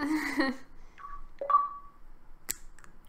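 A short electronic notification chime sounds.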